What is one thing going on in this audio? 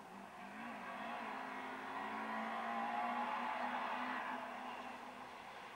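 Gravel crunches and sprays under a rally car's tyres.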